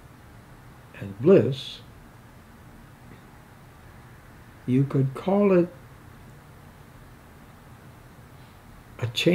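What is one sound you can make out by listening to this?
An elderly man speaks slowly in short phrases, close by.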